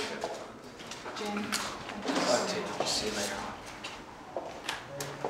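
An elderly man talks casually.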